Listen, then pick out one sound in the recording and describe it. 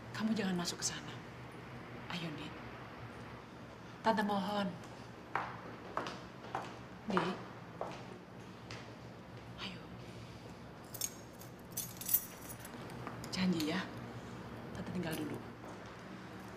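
A middle-aged woman speaks pleadingly up close.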